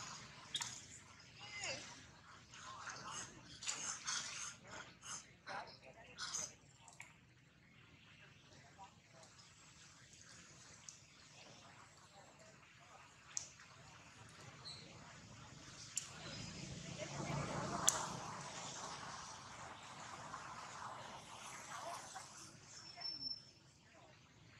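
Monkeys splash and paddle in shallow water.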